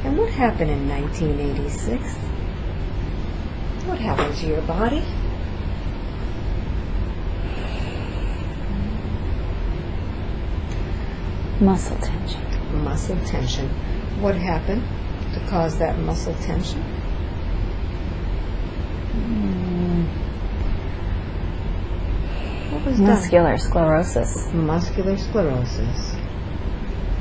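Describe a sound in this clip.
A young woman murmurs softly and drowsily in short bursts, close by.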